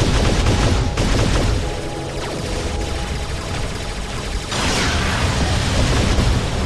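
A large robot's engine hums and its feet thud heavily as it walks.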